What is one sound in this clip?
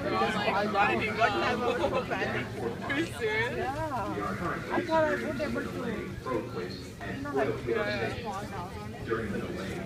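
A large crowd of men and women chatters loudly all around, echoing in a hard-walled underground space.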